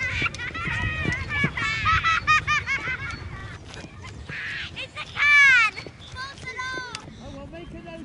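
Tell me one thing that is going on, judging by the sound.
Children shout and chatter in the distance outdoors.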